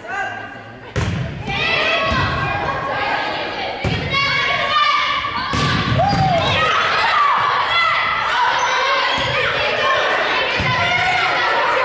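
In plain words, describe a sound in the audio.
Young women shout and call out to each other across the court.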